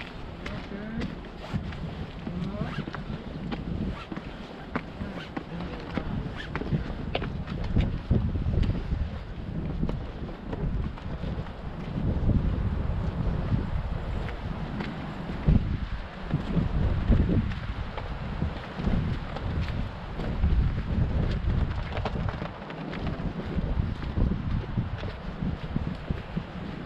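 Footsteps climb stone steps and crunch along a gravel path.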